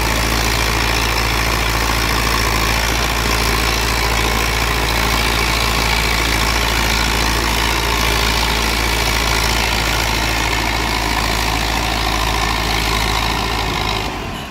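A rotary tiller churns through soil with a rough grinding noise.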